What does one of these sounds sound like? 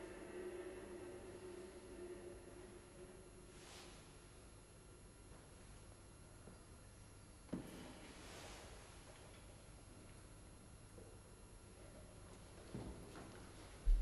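A viola is bowed.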